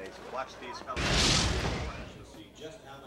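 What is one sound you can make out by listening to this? A bobsled roars past on ice.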